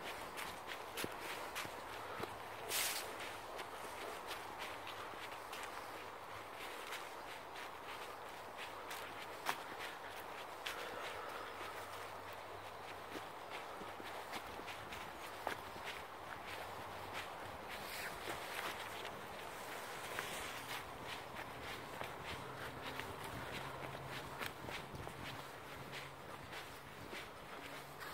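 Fern fronds brush and rustle against legs.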